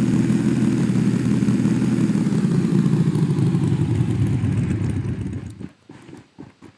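A motorbike engine roars loudly, then slows and fades.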